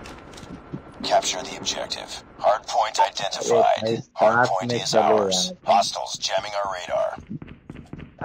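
A rifle fires in quick rattling bursts.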